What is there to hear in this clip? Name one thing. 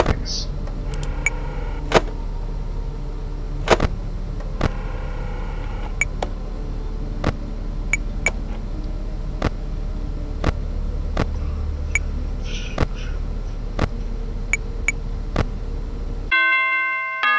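A low electrical hum drones steadily.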